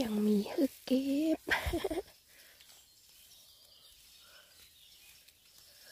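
Fingers pull and snap fungus off damp rotting wood.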